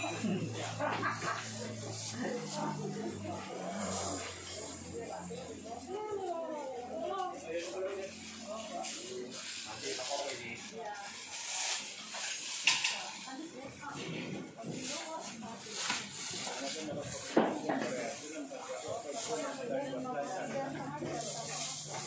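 Men and women chatter in a busy crowd nearby.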